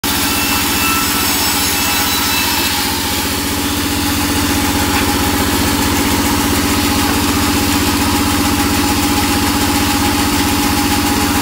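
A band saw blade cuts through wood with a rasping buzz.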